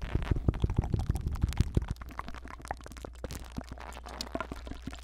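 Fingers tap and scratch on a microphone very close up, in quick crisp clicks.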